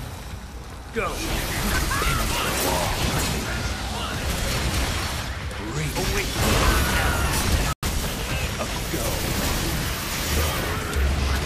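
Monsters roar and screech.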